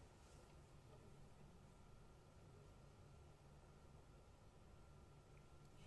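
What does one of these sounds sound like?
A cello plays softly.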